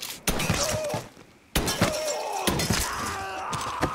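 Pistol shots ring out close by.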